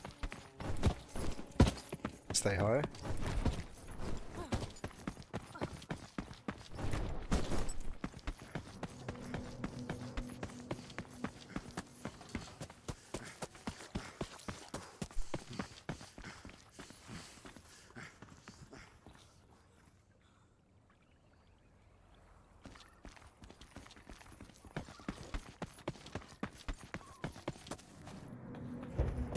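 Quick footsteps run through rustling grass.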